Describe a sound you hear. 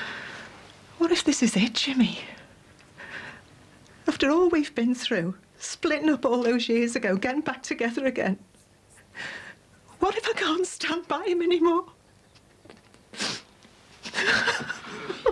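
A middle-aged woman speaks with emotion, her voice strained.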